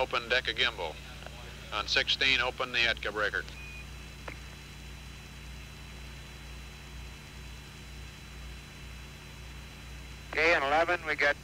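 A small propeller plane's engine drones steadily in flight.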